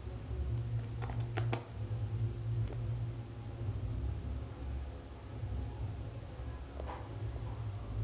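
A small animal's claws tap and scrabble against glass.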